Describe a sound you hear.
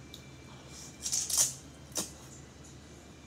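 A woman slurps noodles.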